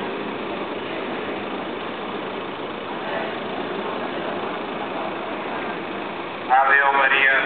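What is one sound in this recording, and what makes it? A large crowd chatters outdoors at a distance.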